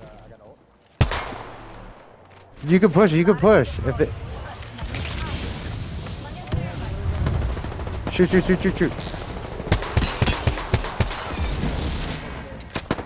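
Rapid gunshots crack out in bursts.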